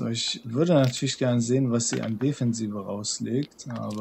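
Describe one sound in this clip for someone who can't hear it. Dice rattle as they are shaken and tossed into a wooden bowl.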